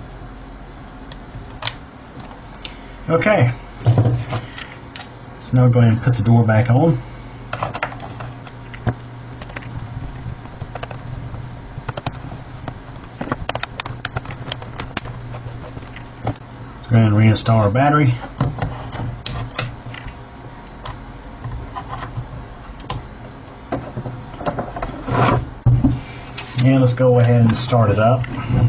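A laptop panel clicks and knocks into place.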